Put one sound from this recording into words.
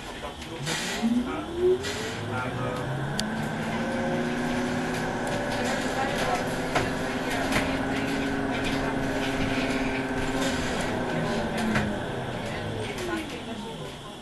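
A tram rumbles and rattles along its tracks.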